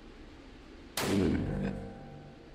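A suppressed rifle fires a single muffled shot indoors.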